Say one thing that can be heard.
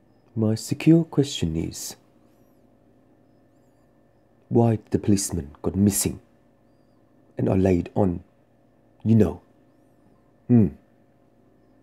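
A man talks close to a microphone in short, animated bursts with pauses between.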